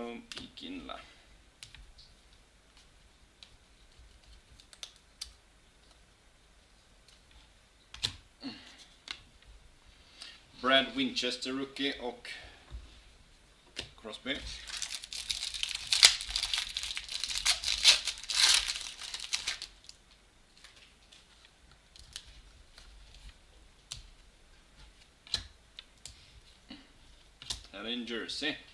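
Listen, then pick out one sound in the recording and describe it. Trading cards slide and tap against each other.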